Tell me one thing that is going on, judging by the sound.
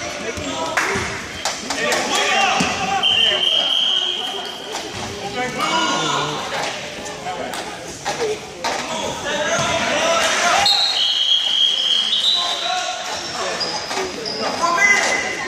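A crowd of adults and children talks and calls out in a large echoing hall.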